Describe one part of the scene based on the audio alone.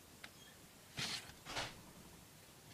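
A knife scrapes as it cuts through a soft block.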